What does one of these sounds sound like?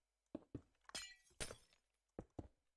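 Glass shatters with a brief tinkling crash.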